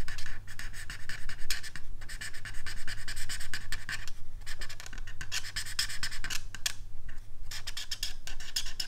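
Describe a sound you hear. An alcohol marker rubs across cardstock in short strokes.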